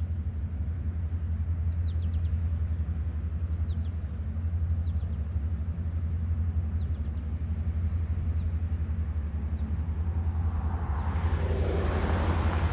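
A boat engine drones low and steady.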